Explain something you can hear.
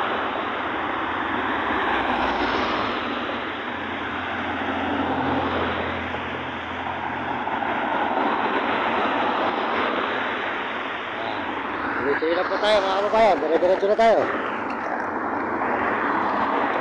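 Wind and road noise rush steadily past a moving vehicle.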